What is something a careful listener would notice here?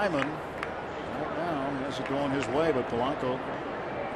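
A stadium crowd murmurs in the distance.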